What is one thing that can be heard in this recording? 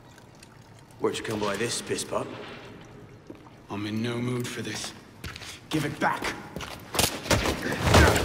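A man speaks in a low, taunting voice.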